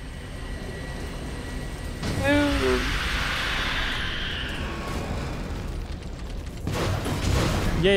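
Laser beams buzz and crackle.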